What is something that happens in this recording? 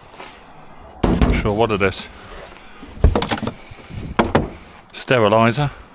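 Items rustle as they are rummaged through.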